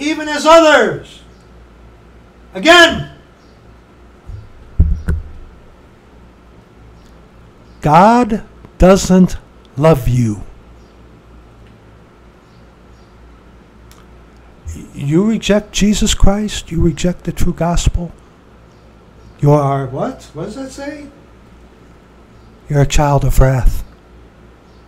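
A middle-aged man speaks with animation in short bursts, close to the microphone.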